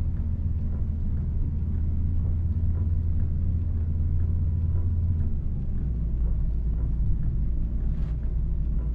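Windscreen wipers sweep back and forth with soft thumps.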